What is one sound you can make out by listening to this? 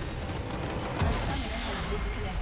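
A loud magical explosion booms.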